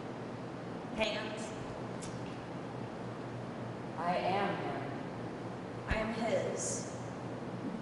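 A young woman speaks with emotion, close by.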